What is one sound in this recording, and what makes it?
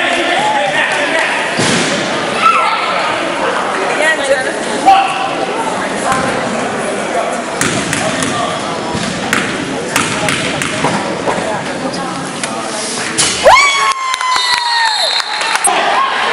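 A crowd of spectators murmurs and chatters in an echoing gym.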